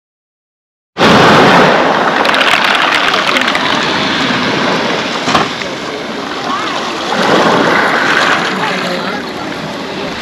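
Waves wash onto pebbles and draw back with a rattle of stones.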